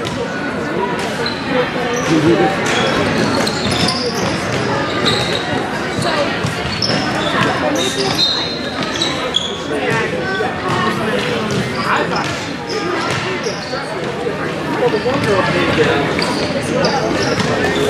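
Young women shout and call out to each other across a large echoing hall.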